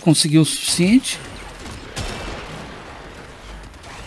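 Futuristic weapons fire with sharp electric zaps.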